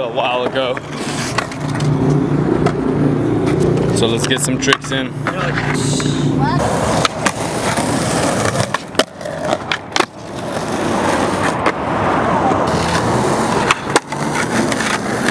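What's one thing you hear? Skateboard wheels roll on concrete with a low rumble.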